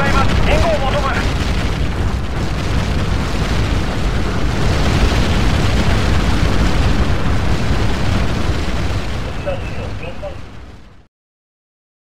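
Wind rushes steadily past a parachute, then cuts off.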